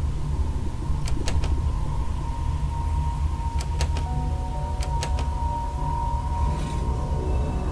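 Metal latches click and clack in a lock.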